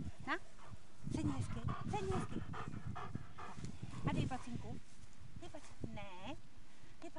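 A woman talks playfully to a dog, close by.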